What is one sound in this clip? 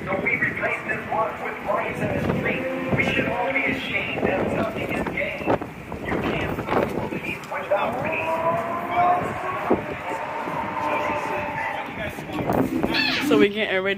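A group of people sing together outdoors.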